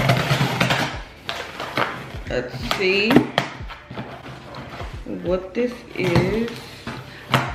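A knife slices through packing tape on a cardboard box.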